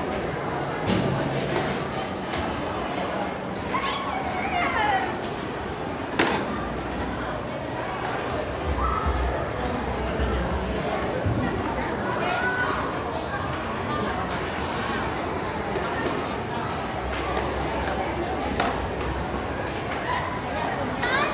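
A crowd of adults and children chatter throughout in a busy echoing hall.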